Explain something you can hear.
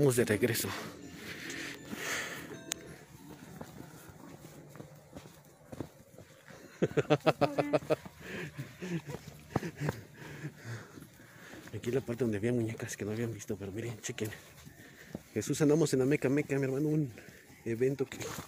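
Footsteps crunch through undergrowth.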